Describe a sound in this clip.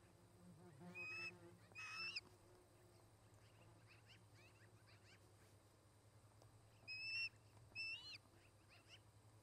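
Birds call nearby with short, high, sharp cries.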